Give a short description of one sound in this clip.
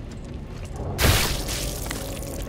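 A heavy stomp lands with a wet, squelching splatter.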